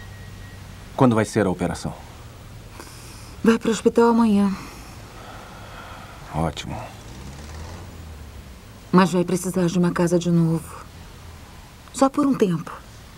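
A man answers calmly from nearby.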